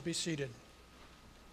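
An elderly man speaks briefly into a microphone.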